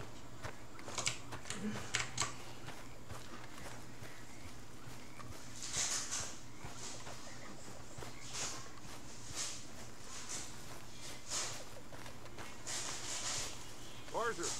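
Footsteps crunch on soft ground at a walking pace.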